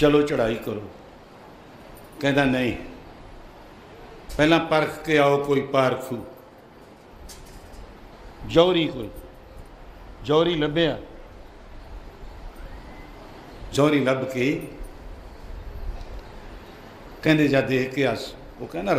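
An elderly man speaks slowly and forcefully into a microphone, in short phrases with pauses.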